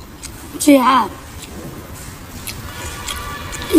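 A young woman chews food loudly.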